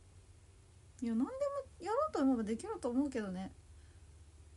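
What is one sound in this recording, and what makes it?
A young woman speaks briefly and calmly, close to the microphone.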